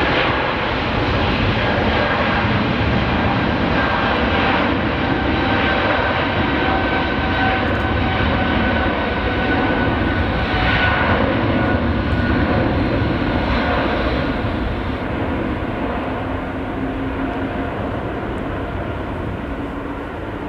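A jet airliner's engines roar loudly as it speeds down the runway and slowly fades.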